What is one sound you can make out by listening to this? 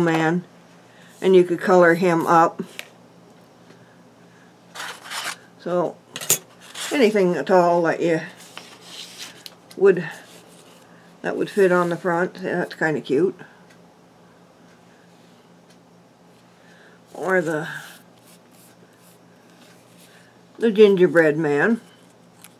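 Card stock rustles and taps softly as hands handle it.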